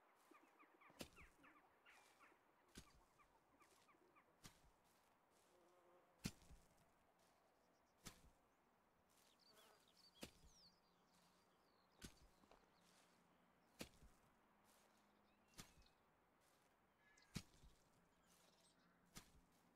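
Footsteps crunch slowly on dry ground.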